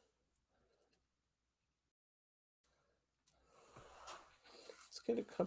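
Paper rustles softly as hands press pieces into place.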